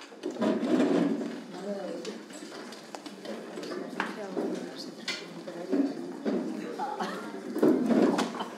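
Several adults talk and murmur over one another in a room.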